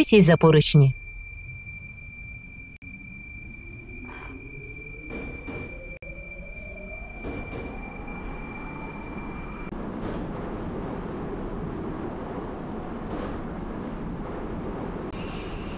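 An electric metro train pulls away, its motors whining higher as it speeds up.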